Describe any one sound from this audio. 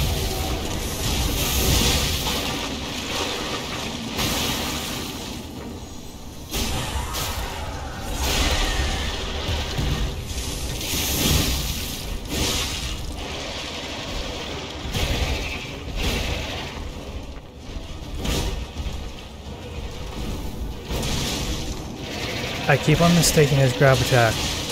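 Blades clash and slash in quick, heavy strikes.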